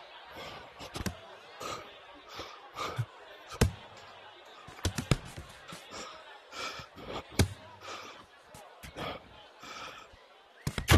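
Boxing gloves thump sharply as punches land.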